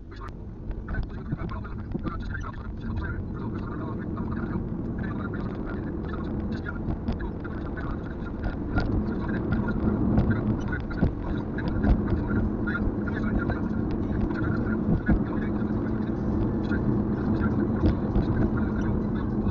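A car drives along an asphalt road, heard from inside the cabin.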